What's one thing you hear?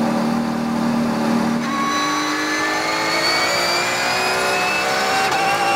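A racing car engine roars loudly from inside the cabin, climbing in pitch as it revs up.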